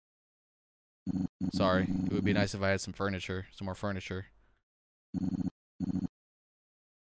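Rapid electronic blips chatter as game dialogue text types out.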